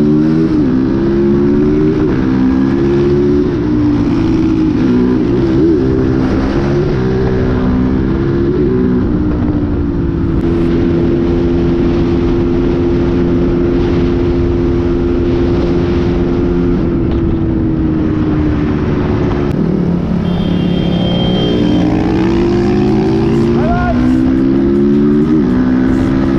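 A motorcycle engine hums close by, rising and falling in pitch as it speeds up and slows down.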